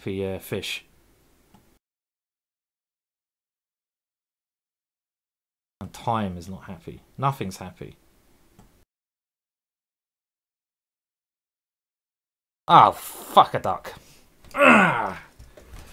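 A man talks with animation into a close microphone, in short bursts with pauses.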